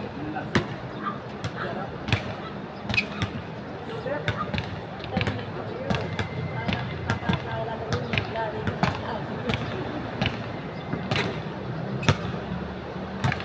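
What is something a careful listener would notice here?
A basketball bounces on a hard court outdoors, each thud ringing sharply.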